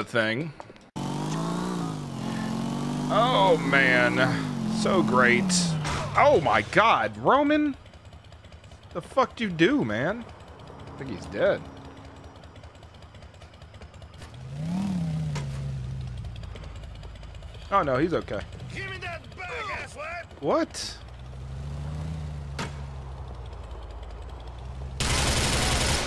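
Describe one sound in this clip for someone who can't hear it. A motorcycle engine revs up and down.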